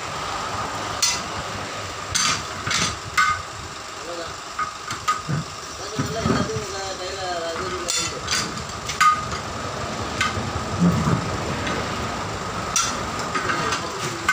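Metal tools clank sharply against a steel wheel rim.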